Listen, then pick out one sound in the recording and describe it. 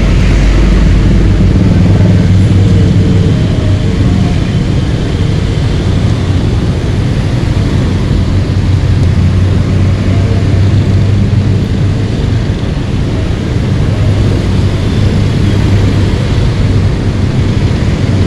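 A motorbike engine hums steadily up close.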